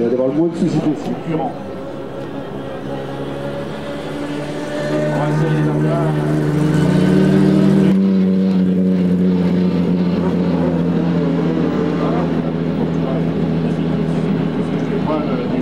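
A car engine idles nearby with a low, steady rumble.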